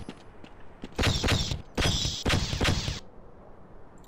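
A weapon fires buzzing bolts in short bursts.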